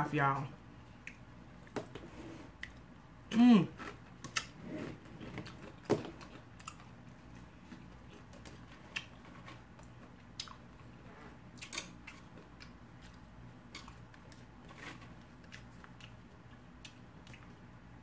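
A woman crunches tortilla chips while chewing.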